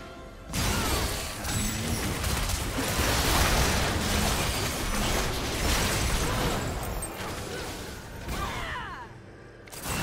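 Game spells whoosh, crackle and blast in a hectic fight.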